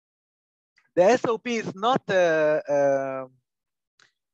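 A man speaks calmly and close to a microphone, as if on an online call.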